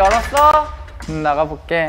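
A young man answers with animation.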